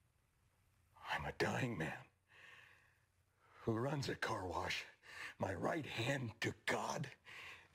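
A man speaks quietly at first and then with rising intensity.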